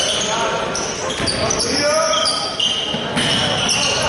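A basketball bounces on the court as it is dribbled.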